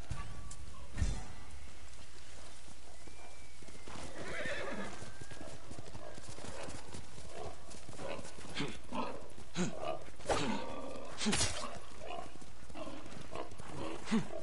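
A horse gallops, its hooves thudding on ground covered in leaves.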